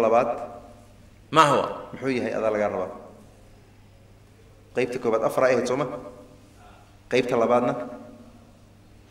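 A man speaks with animation into a microphone in short bursts, with a slight room echo.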